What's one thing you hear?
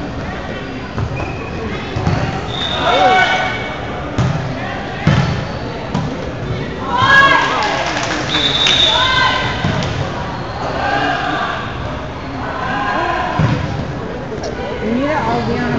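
A volleyball thumps as it is hit.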